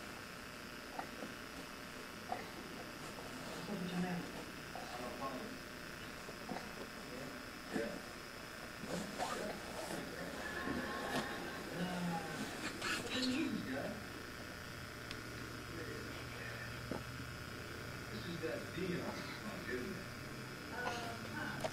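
A baby babbles softly nearby.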